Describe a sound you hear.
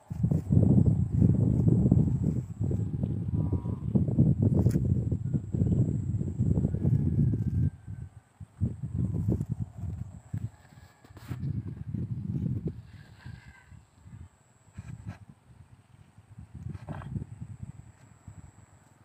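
Wind rumbles in gusts outdoors.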